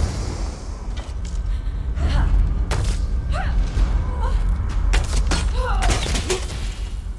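Weapon strikes clash and thud in a fight.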